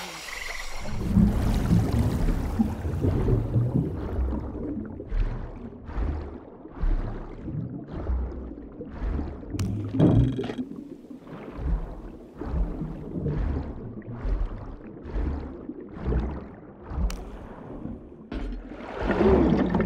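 Muffled underwater strokes pulse steadily as a swimmer dives and swims.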